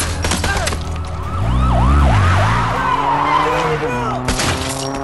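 A police siren wails and warbles nearby.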